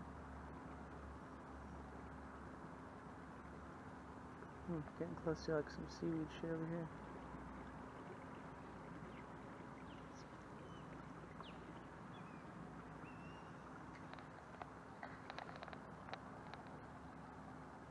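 Water swishes softly along a boat's hull.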